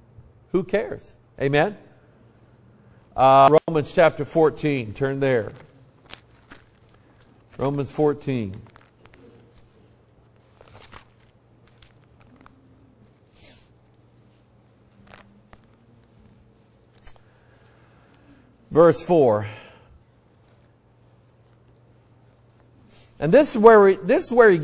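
A man preaches over a microphone in bursts, with long pauses between.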